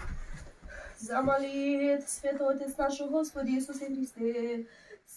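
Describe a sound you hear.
A group of women begins singing together in a small room.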